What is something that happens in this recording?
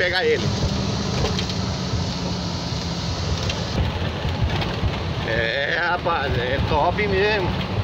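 Tyres crunch and rattle over a bumpy dirt road.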